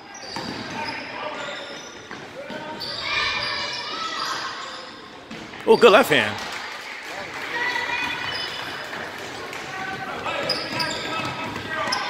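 Voices of spectators chatter throughout a large echoing gym.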